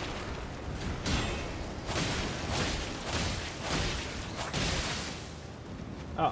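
A sword slashes and strikes with metallic hits.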